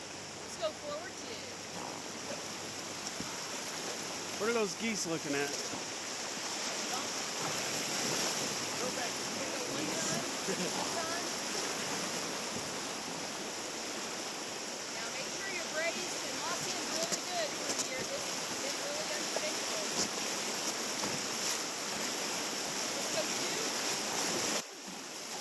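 Whitewater rushes and roars steadily close by, outdoors.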